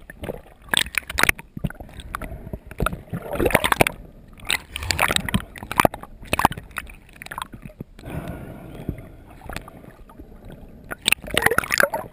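Water splashes and bubbles close by.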